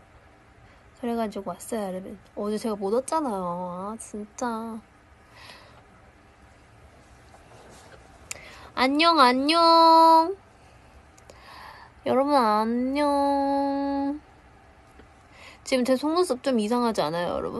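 A young woman talks expressively and close to a microphone, sometimes drawing out her words in a sing-song way.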